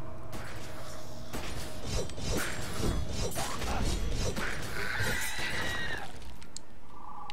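Gunshots crack rapidly in a fierce fight.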